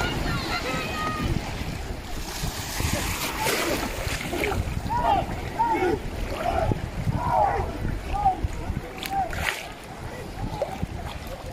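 Waves slosh and splash nearby.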